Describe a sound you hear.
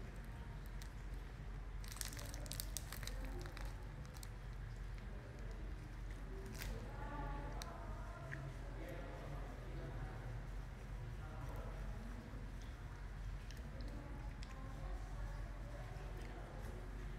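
A young woman talks softly and close up.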